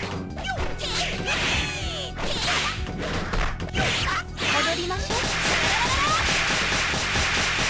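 Video game fighters trade rapid punches and kicks with sharp thwacks.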